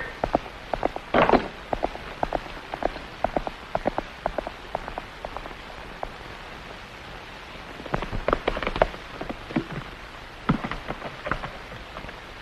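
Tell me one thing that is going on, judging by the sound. Horses' hooves and wagon wheels clatter over rough ground.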